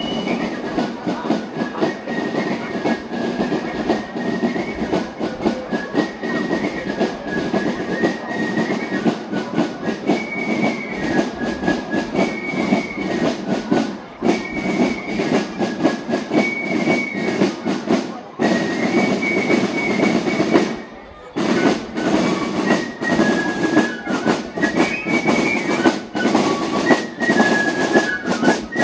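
Snare drums tap a steady marching beat.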